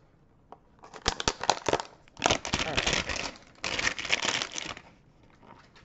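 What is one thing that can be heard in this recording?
Plastic wrapping crinkles and tears close by.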